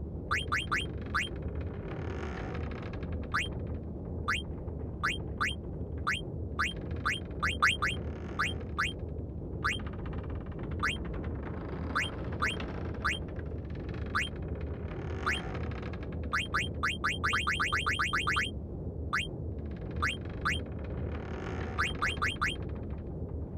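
A game menu cursor beeps with short rising blips as it moves.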